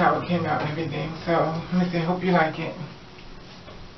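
A woman speaks briefly and calmly nearby.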